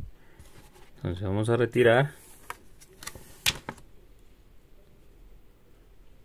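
A thin plastic film crackles as it is peeled and laid down.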